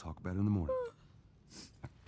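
A young girl yawns loudly.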